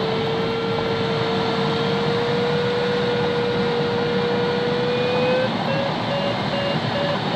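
Air rushes steadily past the cockpit canopy in flight.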